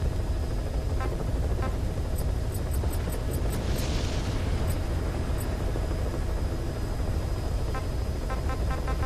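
Short electronic menu blips tick in quick runs.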